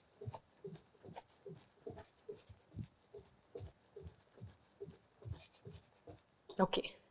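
Bare feet stamp on a wooden floor in a steady rhythm.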